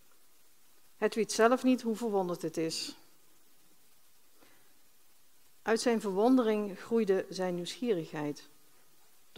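A woman speaks calmly through a microphone, reading out in two short phrases.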